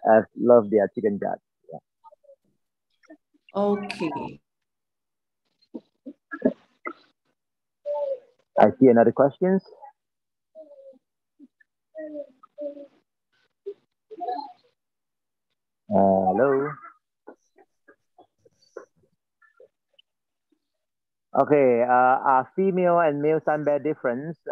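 A man talks calmly through an online call, in short bursts with pauses.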